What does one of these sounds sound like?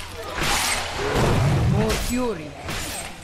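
Monsters groan and growl as they attack.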